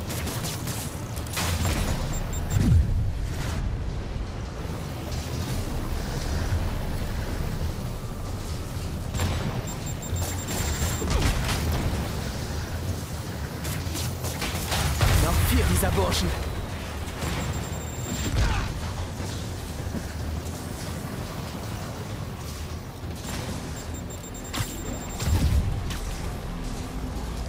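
Electricity crackles and buzzes in bursts.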